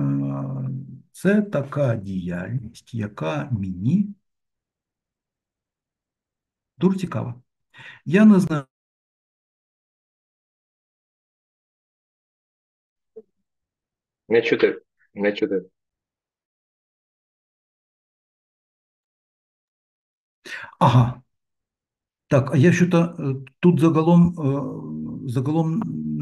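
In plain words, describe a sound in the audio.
A middle-aged man speaks calmly in bursts with pauses, heard through an online call.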